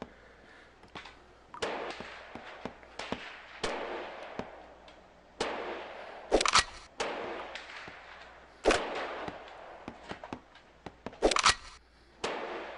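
Metal parts of a gun click and clatter together.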